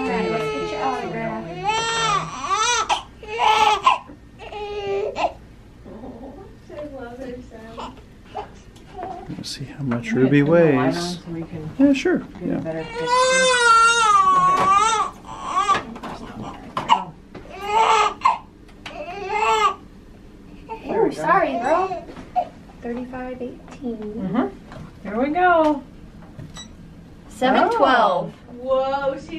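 A newborn baby cries loudly in short, shrill wails.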